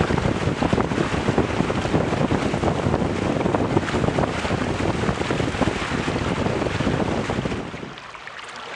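Water splashes and rushes loudly against the hull of a fast-moving sailboat.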